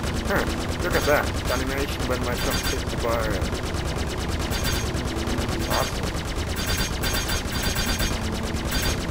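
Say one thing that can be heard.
A spacecraft engine rumbles low and steadily.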